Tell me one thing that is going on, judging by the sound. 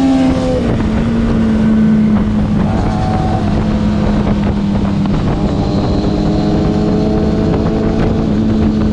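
A motorcycle engine hums steadily close by, shifting pitch as it changes gear.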